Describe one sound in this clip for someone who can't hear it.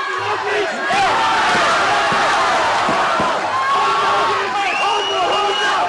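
A large crowd cheers and roars loudly in a big hall.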